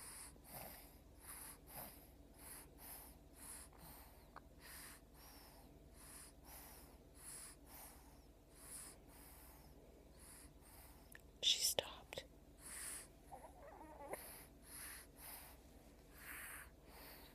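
A baby sucks and swallows softly in a steady rhythm, close by.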